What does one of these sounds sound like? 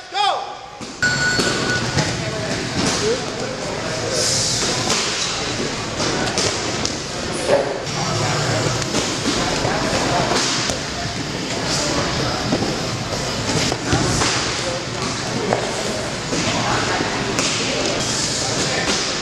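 Bodies thump and shuffle on mats as men wrestle.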